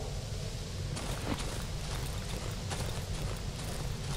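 Footsteps crunch softly on rough ground.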